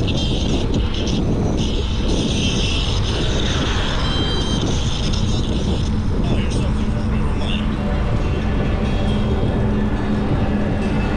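Bicycle tyres hum on a paved path.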